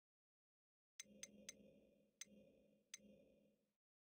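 Soft menu clicks tick a few times.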